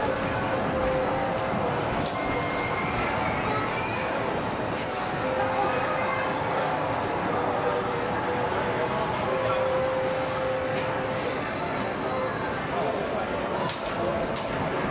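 Arcade machines play loud electronic music and jingles.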